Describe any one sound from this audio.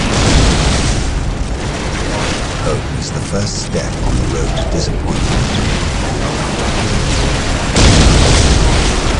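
Gunfire rattles and explosions boom in a battle.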